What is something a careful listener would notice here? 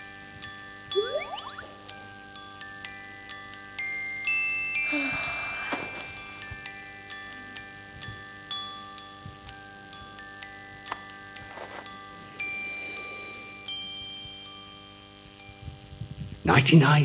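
Chiming electronic game music plays through loudspeakers in a large hall.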